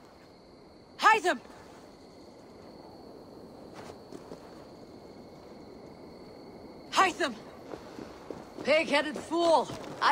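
A woman calls out loudly.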